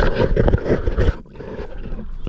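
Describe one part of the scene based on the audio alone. Water rushes and bubbles underwater.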